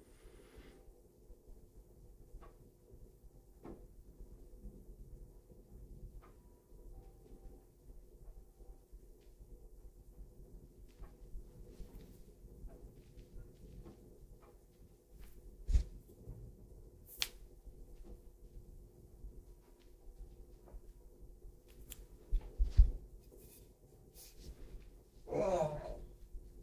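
Oiled hands rub and squeeze a bare foot close to a microphone, with soft slick sounds.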